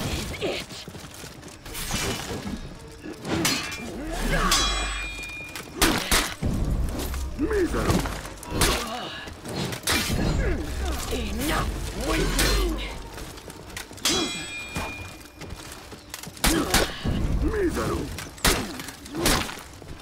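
Swords clash and clang against armour.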